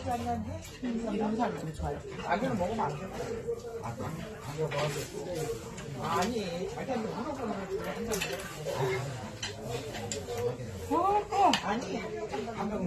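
A young woman talks softly close to a lapel microphone.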